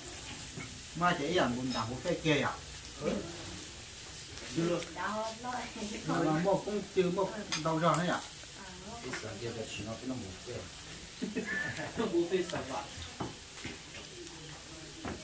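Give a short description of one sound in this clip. Adult men and women talk and laugh close by.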